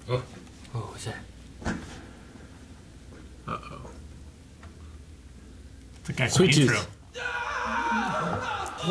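Several men react with short remarks and murmurs close by.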